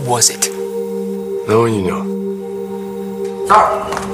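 A young man speaks quietly and seriously.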